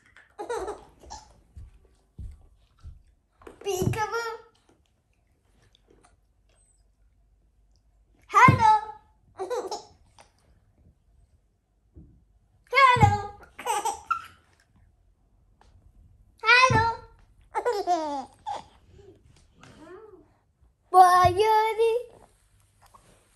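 A young girl calls out playfully in short, lively bursts close by.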